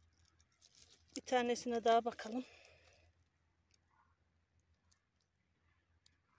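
Dry twigs and needles rustle softly under a hand.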